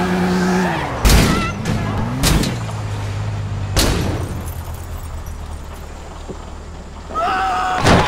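A car slams down with loud metallic crashes.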